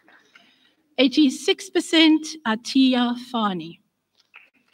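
An elderly woman speaks calmly into a microphone over a loudspeaker in a large hall.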